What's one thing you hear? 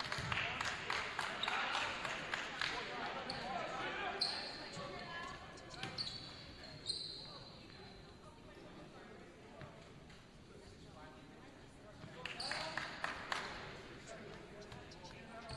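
Volleyball players call out and shout in a large echoing gym.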